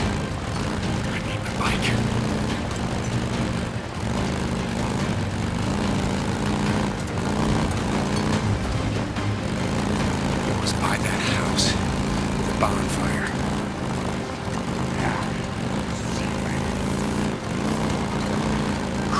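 A motorcycle engine rumbles steadily as it rides along.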